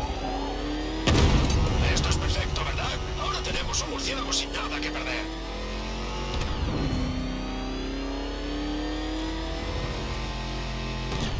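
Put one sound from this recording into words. A powerful car engine roars and hums steadily, rising and falling in pitch as it shifts gears.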